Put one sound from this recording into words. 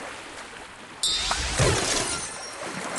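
A bright shimmering whoosh and chime rings out as a pack bursts open.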